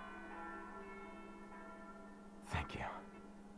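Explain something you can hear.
A young woman sings softly close by.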